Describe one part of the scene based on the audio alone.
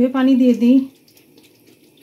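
Liquid pours into a pan.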